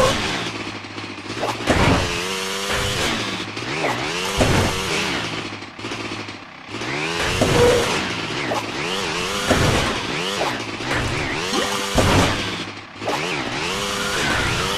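A snowmobile engine revs and hums steadily.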